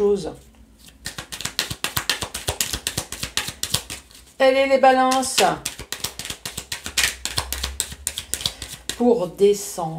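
Playing cards riffle and flick rapidly as they are shuffled by hand.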